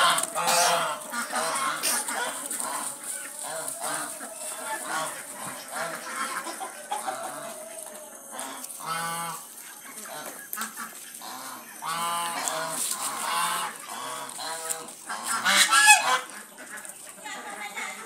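A flock of geese honks loudly and repeatedly nearby.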